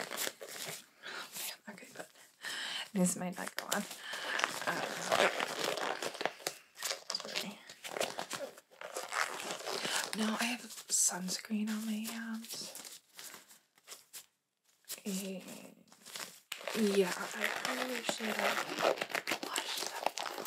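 Rubber gloves rustle and snap as they are handled.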